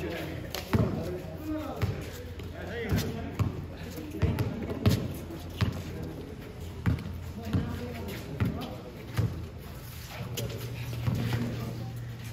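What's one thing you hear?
A basketball bounces on hard ground outdoors.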